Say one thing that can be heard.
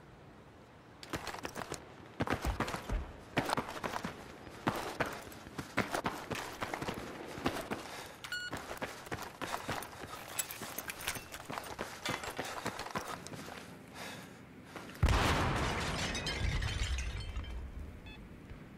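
Footsteps patter quickly on a hard tiled floor.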